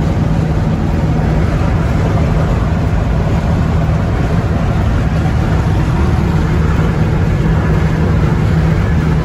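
An engine hums steadily inside a moving vehicle.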